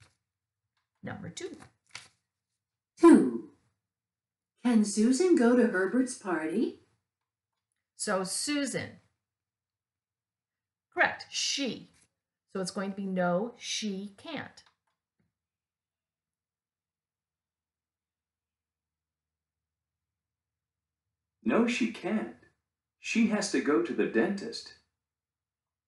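An older woman speaks slowly and clearly close to the microphone, pausing between phrases.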